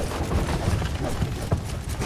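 Footsteps clump up wooden stairs.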